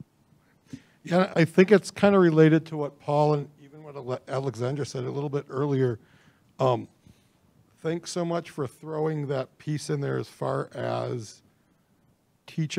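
A middle-aged man speaks calmly into a microphone up close.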